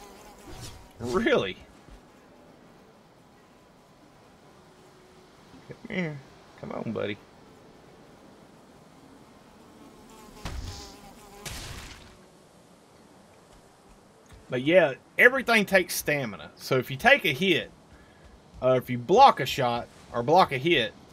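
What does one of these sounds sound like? A man talks calmly and close up into a microphone.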